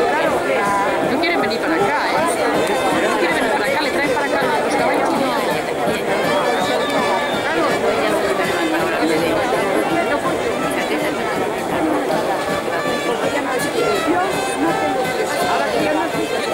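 A crowd of people shouts and calls out in the distance outdoors.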